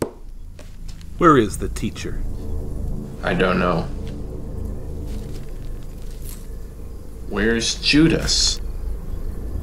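A man asks a question in a stern voice.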